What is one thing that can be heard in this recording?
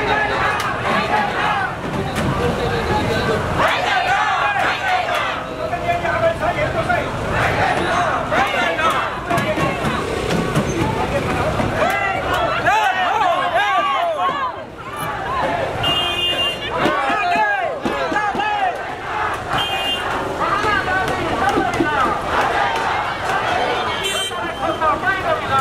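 A crowd of men and women talks loudly all around.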